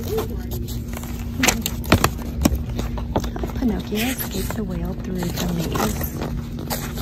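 Paper pages rustle as a book's pages are flipped.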